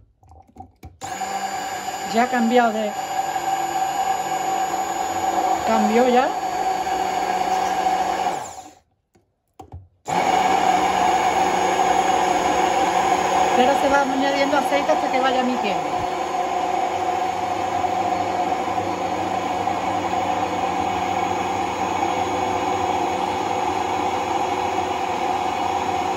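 A hand blender whirs steadily, churning a thick liquid.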